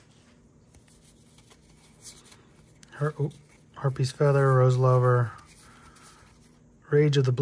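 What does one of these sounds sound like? Playing cards softly rustle and slide against each other in hands.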